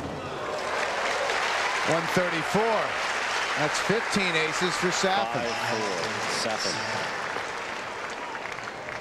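A large stadium crowd applauds and cheers.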